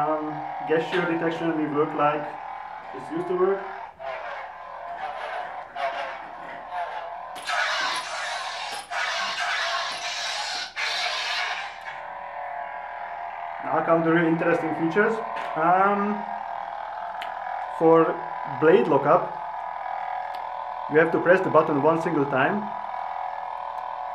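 A toy lightsaber hums steadily.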